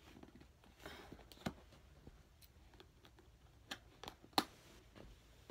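Small objects click and tap against each other.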